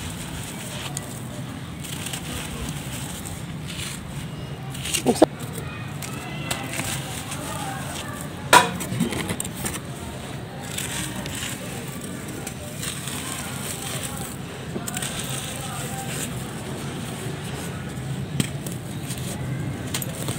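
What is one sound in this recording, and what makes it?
Hands rub and crumble sandy clumps.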